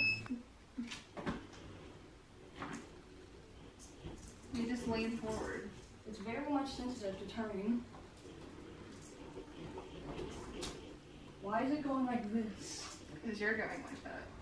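A hoverboard's motor hums as it rolls across a wooden floor.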